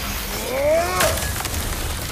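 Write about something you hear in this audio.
An axe strikes with a sharp metallic clang.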